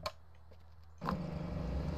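A fuel pump hums as fuel flows from a nozzle.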